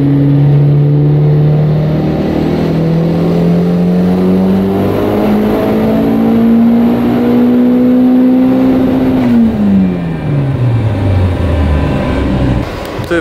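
A car engine revs steadily higher under load, then winds down.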